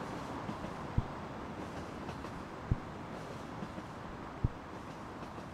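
Footsteps thud slowly on pavement.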